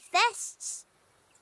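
A young child speaks brightly, close up.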